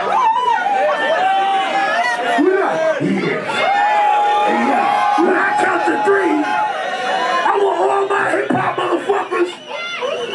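A man raps loudly into a microphone over a loudspeaker.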